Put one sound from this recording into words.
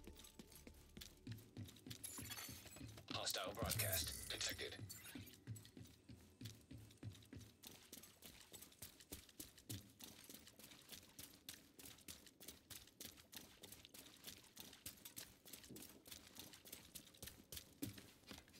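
Quick footsteps run steadily across a hard floor.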